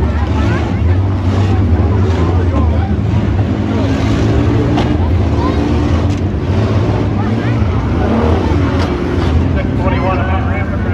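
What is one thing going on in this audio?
Many car engines roar and rev loudly outdoors.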